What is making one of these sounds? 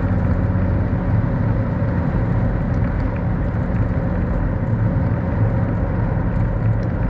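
Tyres roll on a paved road with a low rumble.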